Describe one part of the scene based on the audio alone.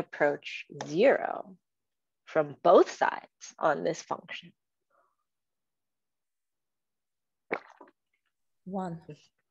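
A young woman talks calmly over an online call.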